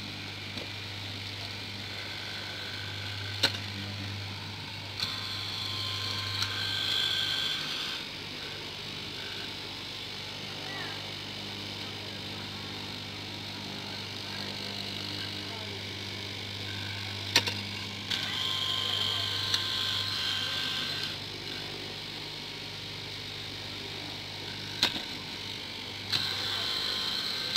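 A straight-knife cutting machine's motor hums as it runs.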